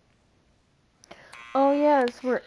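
A boy knocks on a door.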